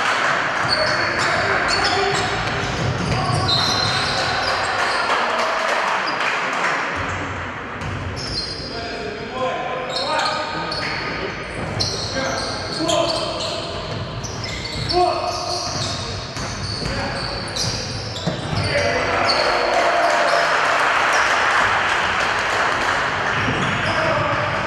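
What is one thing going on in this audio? Sneakers squeak sharply on a hardwood floor in a large echoing hall.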